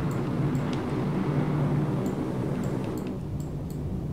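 Waves wash and roll over open sea.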